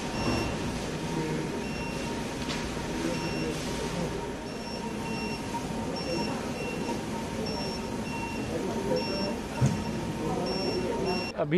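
A patient monitor beeps in short, evenly repeated tones.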